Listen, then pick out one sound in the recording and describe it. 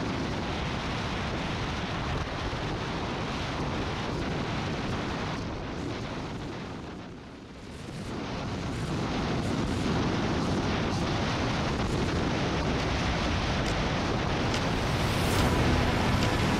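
Wind roars loudly past a moving motorcycle.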